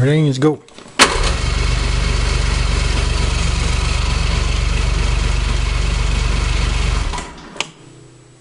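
A snowmobile engine runs loudly and steadily, then cuts off.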